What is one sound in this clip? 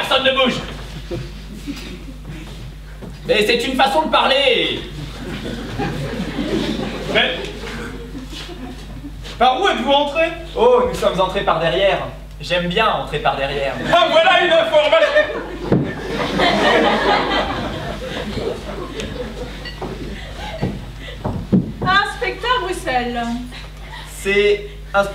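Adult actors, men and women, speak loudly and with animation on a stage in a large echoing hall.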